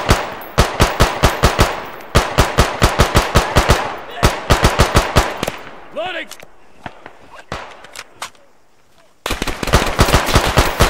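Rifle shots fire in rapid bursts nearby.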